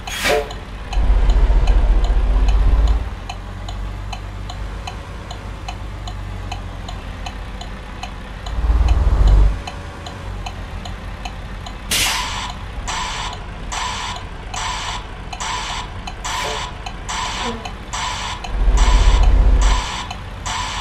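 A truck engine revs up in short, loud bursts.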